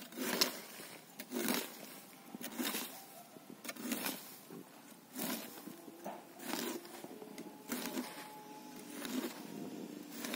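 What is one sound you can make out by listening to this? A hoe scrapes and scratches through dry soil in a steady rhythm.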